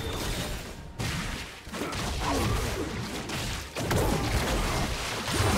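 Video game combat and spell effects whoosh and burst.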